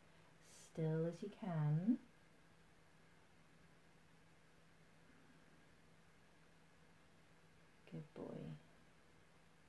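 A woman speaks softly nearby.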